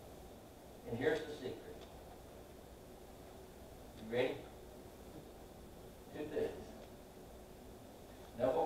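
An elderly man speaks slowly in short phrases through a microphone in a large echoing hall.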